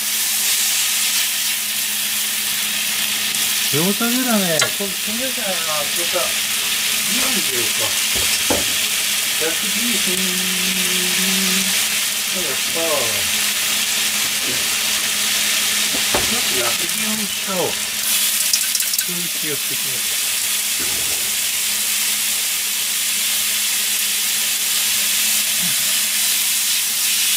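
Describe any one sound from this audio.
Chopsticks scrape and tap against a pan.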